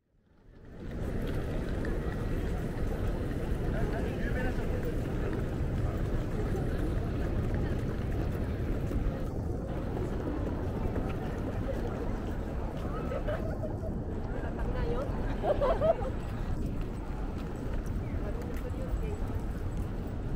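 A crowd of people chatter faintly in an open plaza.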